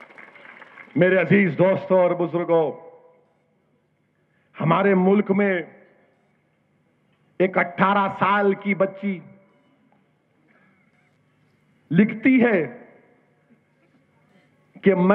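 A middle-aged man speaks forcefully into a microphone, heard through loudspeakers in bursts with pauses.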